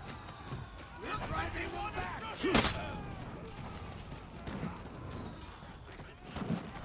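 A crowd of men shout battle cries.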